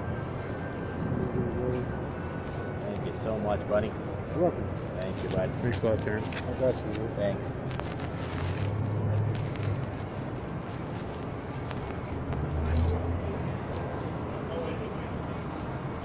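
A man speaks casually close to the microphone.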